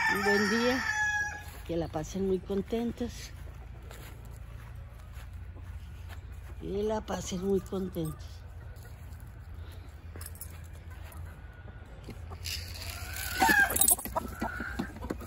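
A hen clucks nearby.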